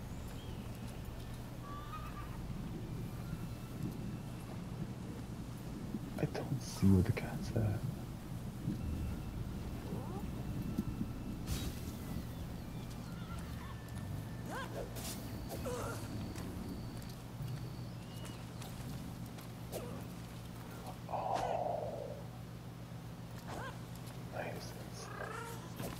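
Footsteps rustle softly through plants and grass.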